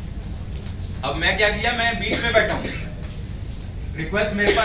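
A young man speaks to a room, heard from across it.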